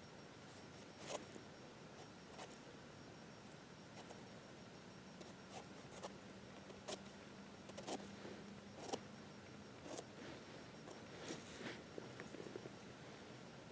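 A knife softly scrapes and cuts the base of a mushroom stem.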